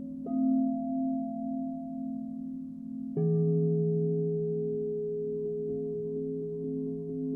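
Crystal singing bowls are struck and ring with deep, long humming tones.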